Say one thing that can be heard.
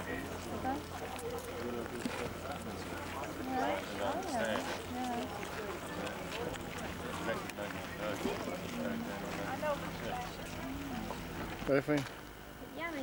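Men and women chat casually nearby outdoors.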